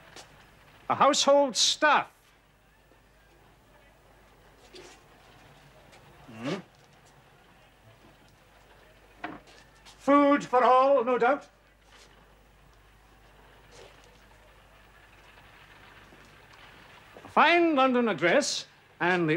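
A middle-aged man speaks sternly and loudly nearby.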